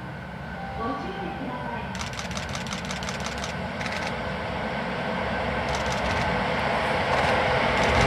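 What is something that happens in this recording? A train approaches along the tracks, its rumble growing louder.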